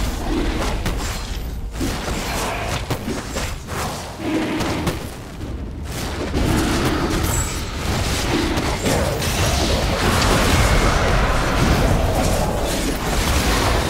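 Fire blasts and magic bursts crackle in a fight.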